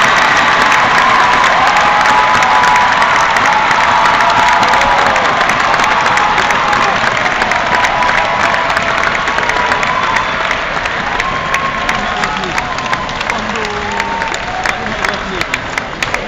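People in the crowd clap their hands.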